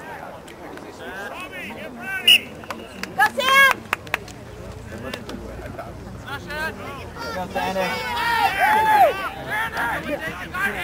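Young people and adults shout and cheer outdoors.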